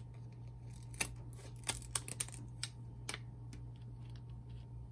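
Scissors snip through a plastic pouch.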